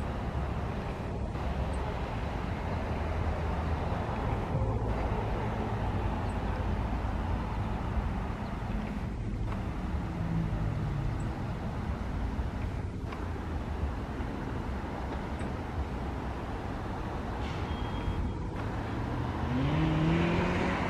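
A diesel train rumbles steadily as it approaches along the track.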